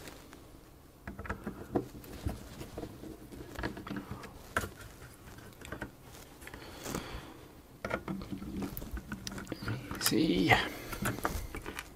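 Small screws and a screwdriver click and scrape against a circuit board.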